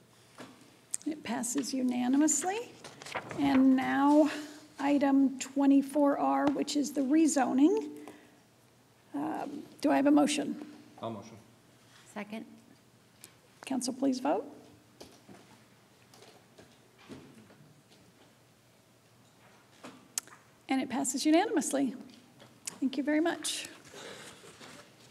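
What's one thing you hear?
A middle-aged woman speaks calmly into a microphone, in short phrases with pauses.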